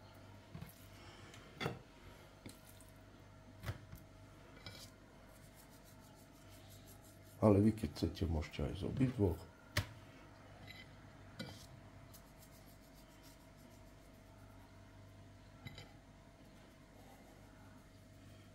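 Raw meat slaps softly onto a wooden board.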